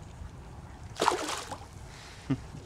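A fish splashes into the water.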